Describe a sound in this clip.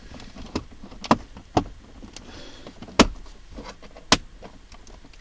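A plastic lid clicks and snaps as it is pushed open and shut.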